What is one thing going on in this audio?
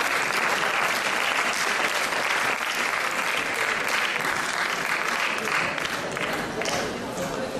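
An audience applauds in a large hall, then the clapping fades away.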